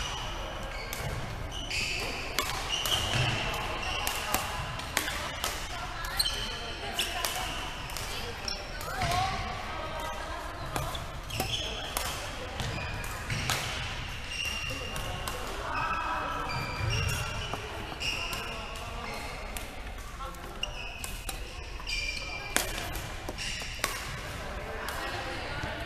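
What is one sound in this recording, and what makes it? Rackets strike a ball with sharp pops.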